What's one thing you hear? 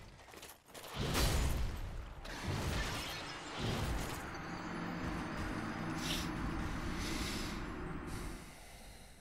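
Swords clash and armour clanks in a fight.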